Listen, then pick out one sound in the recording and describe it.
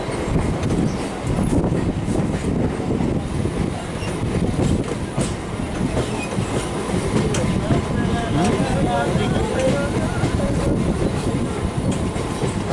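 Wind rushes past an open train door.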